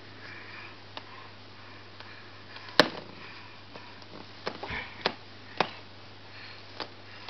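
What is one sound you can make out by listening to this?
A toddler bangs a hand against a window pane.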